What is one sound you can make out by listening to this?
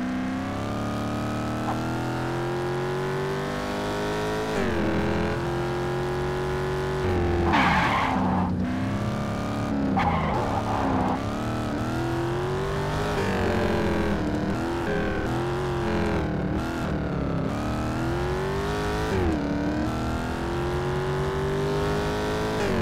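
A car engine roars and revs up through the gears.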